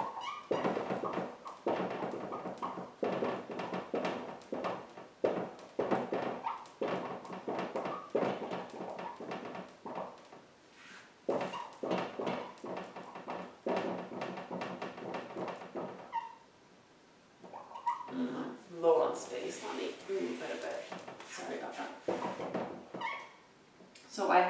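A young woman speaks calmly and steadily, as if explaining.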